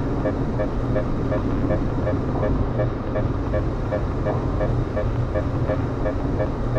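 A countdown timer beeps quickly and steadily.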